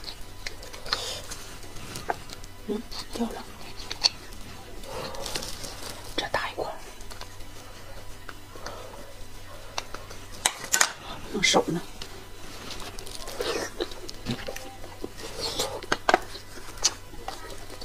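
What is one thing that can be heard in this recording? A utensil scrapes and clicks against bone.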